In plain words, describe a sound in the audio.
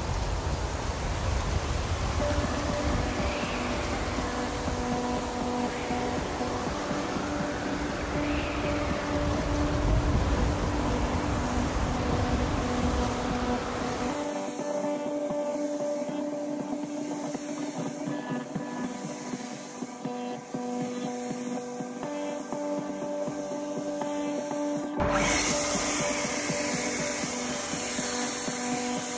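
A leaf blower roars steadily close by.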